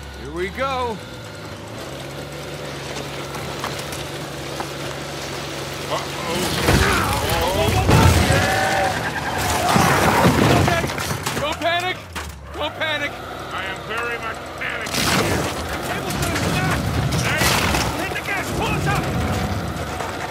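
A jeep engine growls as it climbs over rock.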